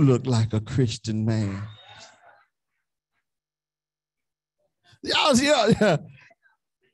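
A man preaches with animation through a microphone.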